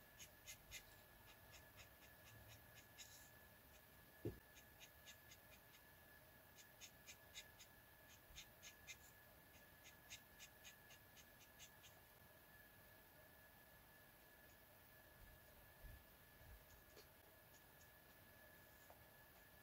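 A marker tip taps and squeaks softly on paper.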